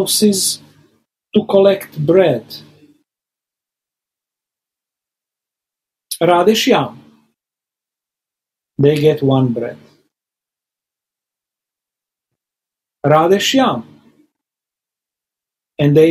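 A middle-aged man speaks calmly in short phrases over an online call, with long pauses between them.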